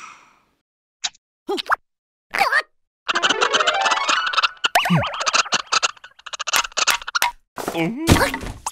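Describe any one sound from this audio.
A second cartoon creature yelps and jabbers excitedly.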